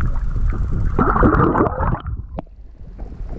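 Air bubbles gurgle and fizz up through the water.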